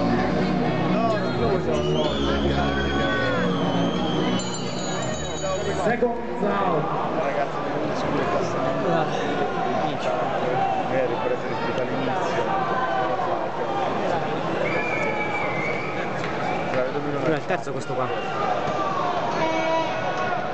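A large indoor crowd chatters and shouts in an echoing arena.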